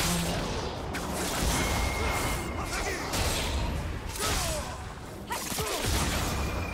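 Game spell effects crackle and whoosh in a busy fight.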